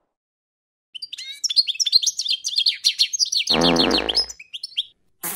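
A small bird chirps.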